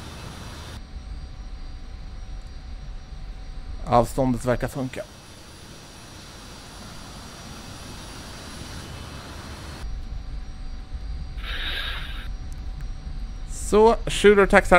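A jet engine idles with a low, steady rumble.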